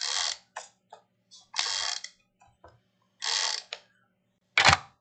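Sticky tape rips loudly as it is pulled off a roll in short bursts.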